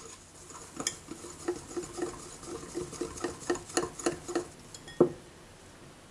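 A whisk clicks rapidly against a glass bowl.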